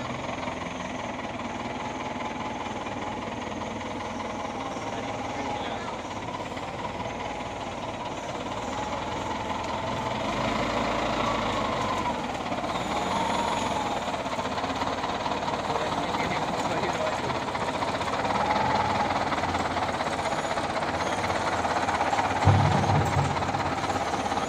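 A diesel wheel loader engine runs as the loader rolls forward.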